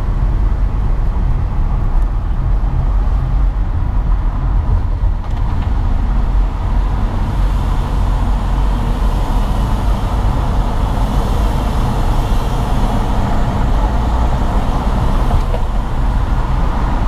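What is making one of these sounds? Car tyres roll steadily over the road.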